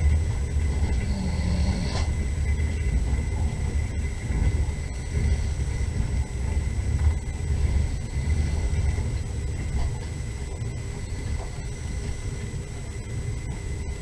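A car engine hums steadily from inside a moving vehicle.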